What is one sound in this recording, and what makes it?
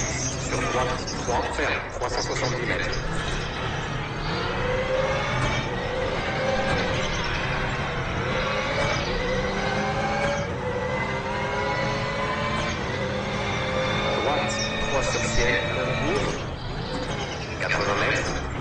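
A rally car engine roars and revs up and down through the gears.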